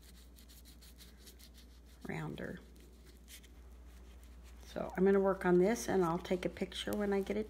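A brush dabs softly against a hollow plastic head.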